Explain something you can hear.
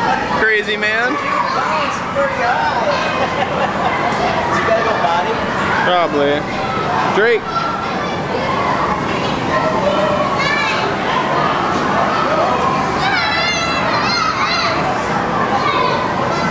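Children shout and squeal with high voices in a noisy, echoing hall.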